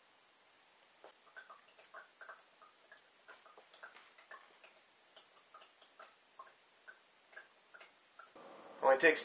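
Water trickles and drips through a filter into a glass.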